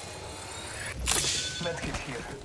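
An energy shield bursts with a sharp whoosh.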